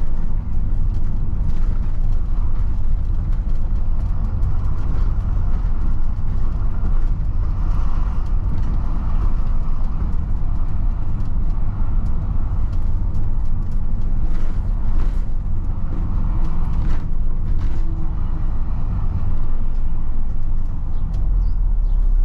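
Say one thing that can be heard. A bus engine rumbles loudly as the bus drives along a road.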